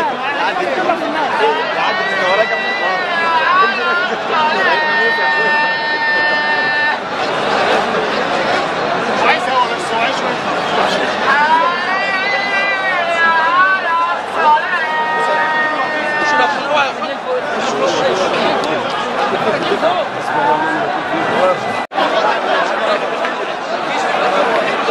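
Many men shout and talk at once in a dense crowd nearby.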